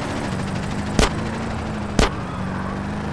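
A gun fires two loud shots.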